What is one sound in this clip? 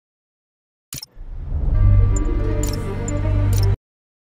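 Game music plays at the main menu.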